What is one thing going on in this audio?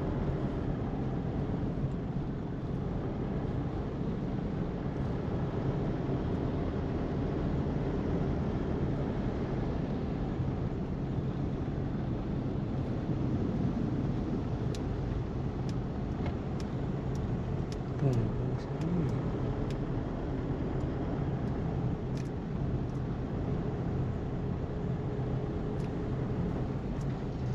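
A car's engine and tyres hum from inside as it drives along a city street.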